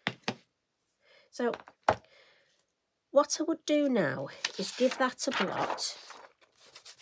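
A sheet of paper rustles as it is lifted.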